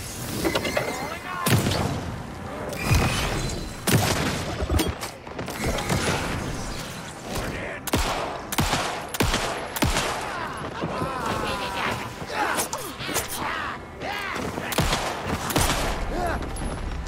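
Pistol shots ring out again and again, loud and sharp.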